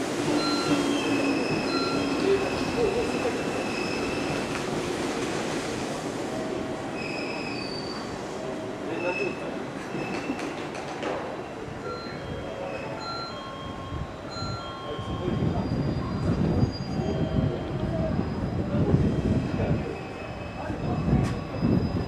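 Stopped electric trains hum steadily.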